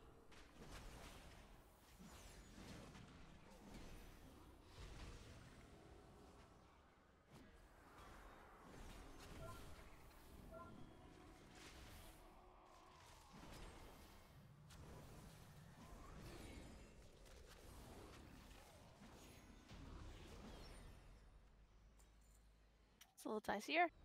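Spell effects whoosh and crackle in a fantasy battle.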